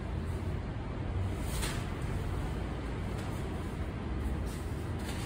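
Cloth rustles as a shawl is unfolded and draped.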